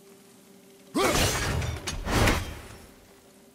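An axe swings through the air with a heavy whoosh.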